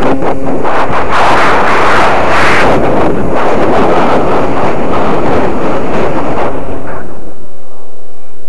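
Wind rushes loudly past a falling object.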